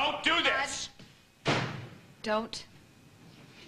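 A woman speaks tensely.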